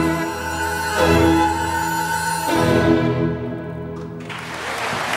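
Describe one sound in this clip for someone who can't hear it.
An orchestra plays a loud closing chord.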